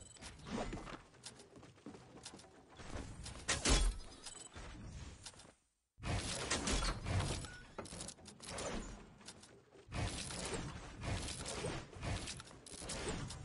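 Wooden walls and ramps snap into place with quick clacks.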